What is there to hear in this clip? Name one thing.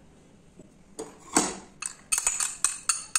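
A metal spoon clinks and scrapes against a glass bowl.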